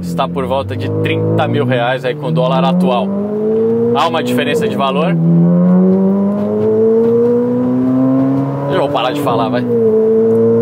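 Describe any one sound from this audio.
A man talks with animation close to a clip-on microphone.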